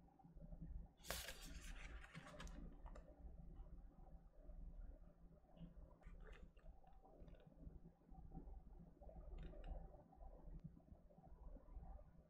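A paper booklet rustles as pages are turned.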